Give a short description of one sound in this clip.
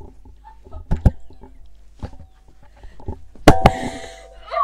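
A microphone thumps and knocks as it is handled.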